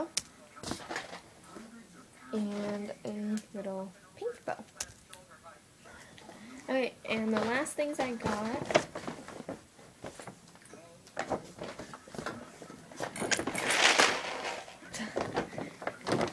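A plastic gift bag rustles and crinkles.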